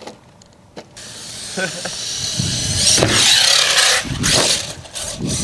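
A small electric motor whines as a toy car races over rough ground.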